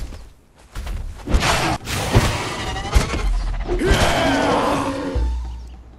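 Heavy blows thud against a large beast.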